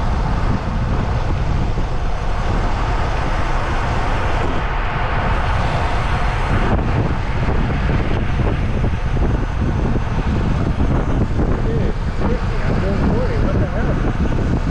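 Tyres roar steadily on asphalt.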